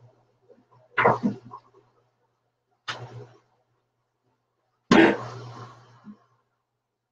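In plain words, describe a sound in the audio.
Dishes clatter and clink in a sink.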